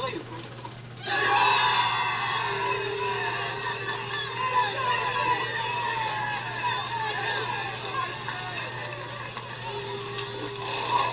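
A large crowd cheers and shouts, heard through a television speaker.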